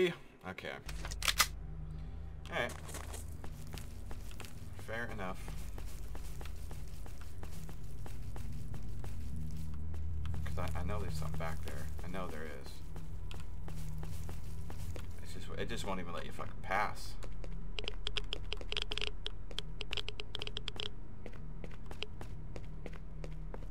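Footsteps crunch on grass and a cracked road.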